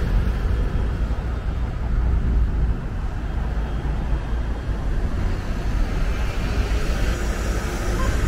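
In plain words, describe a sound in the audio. A bus engine hums as the bus drives past close by.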